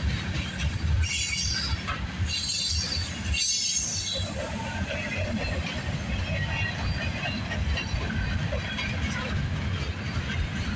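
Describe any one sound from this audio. Freight cars rumble heavily along the rails close by.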